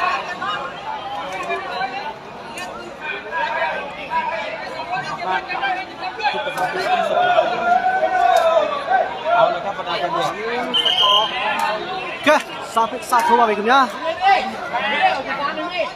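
A large outdoor crowd chatters and cheers loudly.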